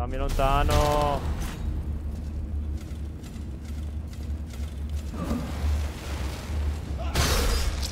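Metal weapons clang and strike in a fight.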